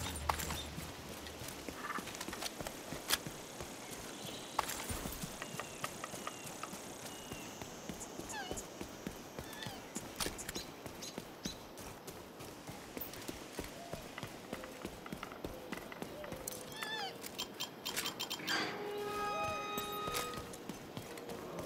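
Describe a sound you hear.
Footsteps crunch over ground as a character runs.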